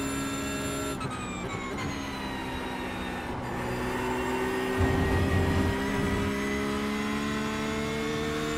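A racing car engine slows down for a corner and then revs back up.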